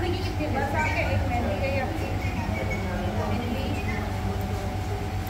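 Women chat with each other close by.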